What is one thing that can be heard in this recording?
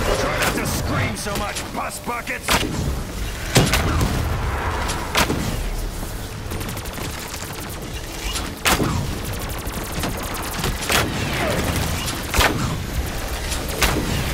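Crackling electric bursts zap and fizz.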